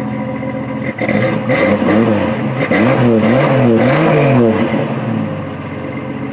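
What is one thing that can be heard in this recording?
A car engine revs up and down through the exhaust.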